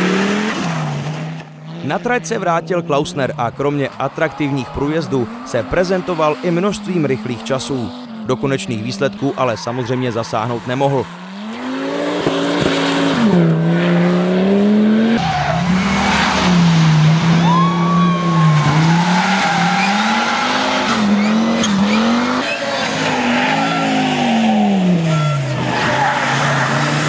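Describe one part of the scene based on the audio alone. A rally car engine roars loudly, rising and falling in pitch as it speeds past.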